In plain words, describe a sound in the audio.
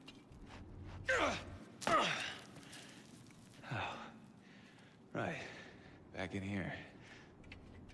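A young man speaks loudly and tensely, close by.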